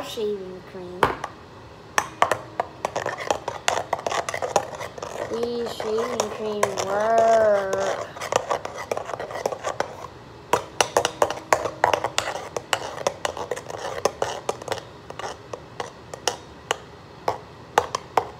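Small objects clatter and click against a metal bowl close by.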